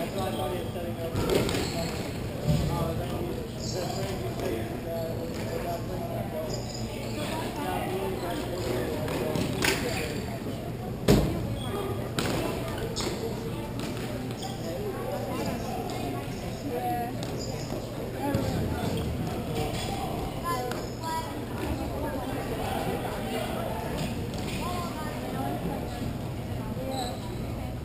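Skate wheels roll and scrape across a hard rink floor.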